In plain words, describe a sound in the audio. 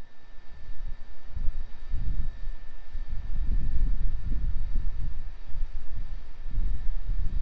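A distant rocket rumbles low overhead.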